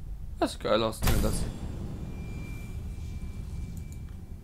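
A bright magical whoosh swells and rings out.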